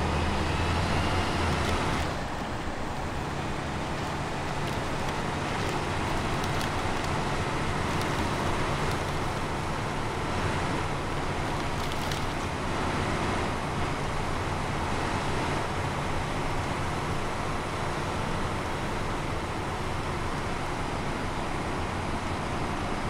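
Tyres crunch through snow.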